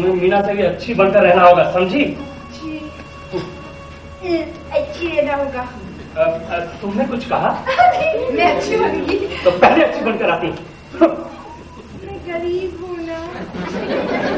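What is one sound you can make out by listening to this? A woman speaks with feeling on a stage, heard from the audience.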